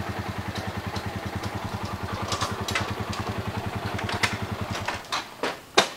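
A motorcycle engine idles nearby with a steady chugging putter.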